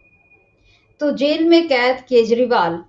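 A woman presenter speaks with animation through a microphone.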